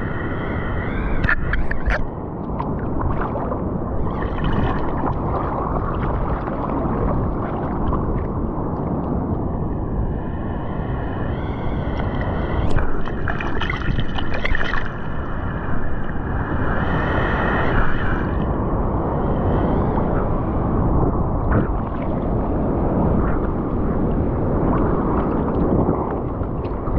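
Water sloshes and laps close by, outdoors.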